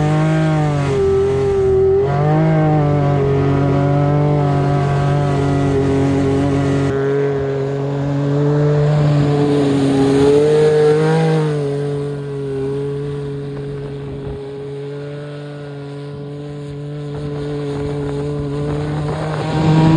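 A side-by-side UTV engine revs hard.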